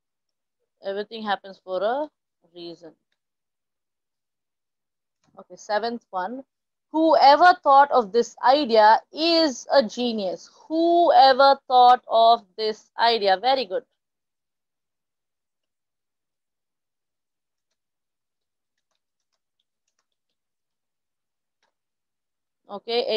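A woman speaks calmly and clearly into a microphone over an online call.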